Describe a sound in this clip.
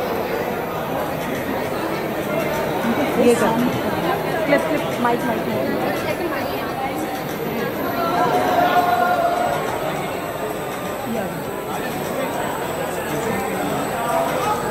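A noisy crowd chatters all around.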